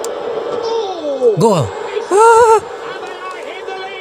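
A stadium crowd cheers loudly for a goal through television speakers.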